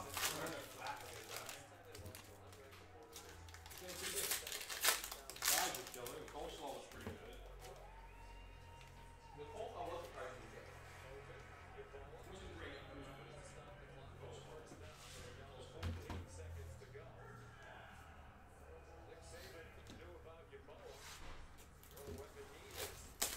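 Cards and packs rustle and tap as they are handled.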